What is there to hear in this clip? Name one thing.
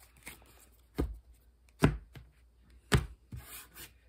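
Playing cards tap and slap onto a table.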